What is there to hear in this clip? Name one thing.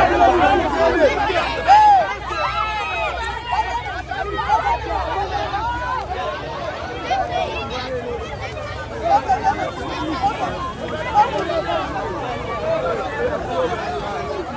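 A crowd of men and women shout and talk over one another close by.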